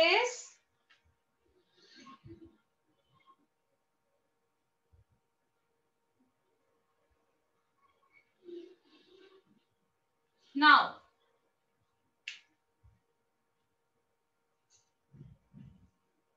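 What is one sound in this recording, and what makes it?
A young woman speaks calmly in short bursts, close by.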